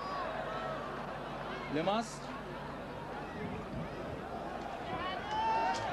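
A crowd roars and shouts in an open stadium.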